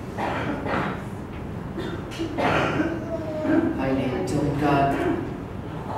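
A young man speaks calmly through a microphone in a room with some echo.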